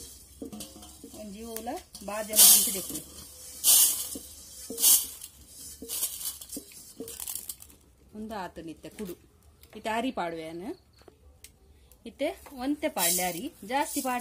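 Seeds rattle as a hand scoops them out of a metal wok.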